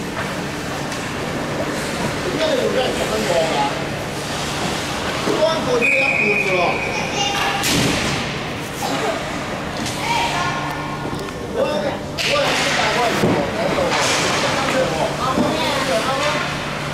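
Young children shout and call out in a large echoing hall.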